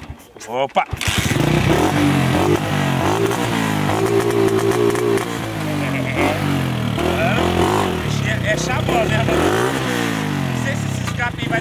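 A small motorcycle engine starts and idles with a steady putter.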